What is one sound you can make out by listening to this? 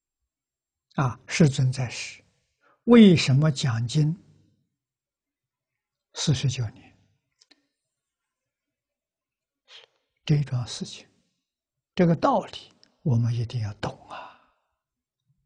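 An elderly man speaks calmly in short phrases with pauses, close to a clip-on microphone.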